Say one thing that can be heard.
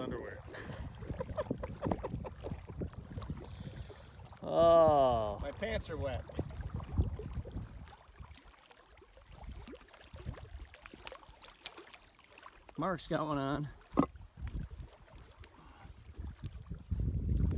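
Water laps gently at a rocky shore.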